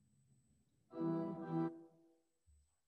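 A woman sings a short phrase into a microphone.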